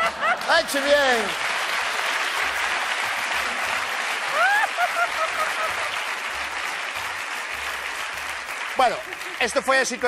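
A studio audience applauds and cheers.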